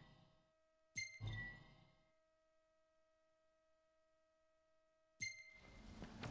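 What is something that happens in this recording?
A short electronic chime sounds twice.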